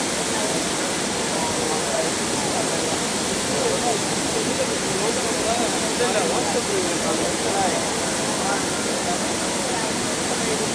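Water jets spray and hiss steadily.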